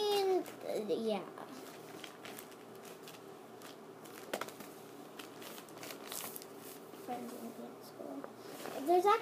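A young girl talks close by.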